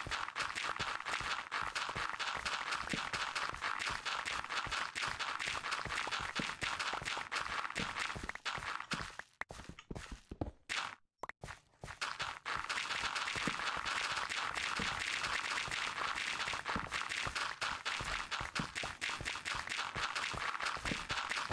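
A pickaxe rapidly chips and digs at earth and stone.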